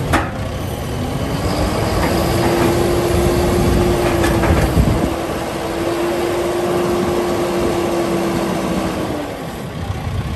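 A tractor's hydraulic loader whines as the bucket lowers.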